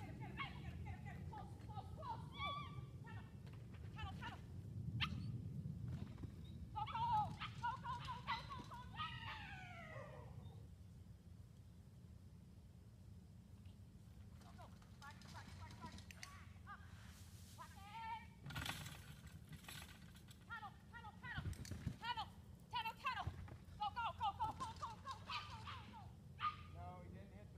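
A dog whines and yelps excitedly nearby.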